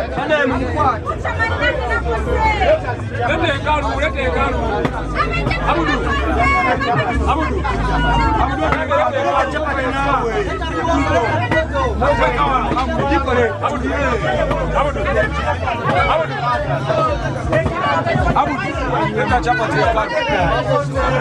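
Several men talk loudly and with animation over one another close by.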